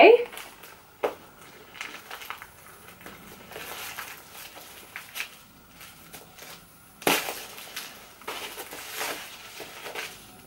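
Paper and plastic packaging rustle as it is unwrapped.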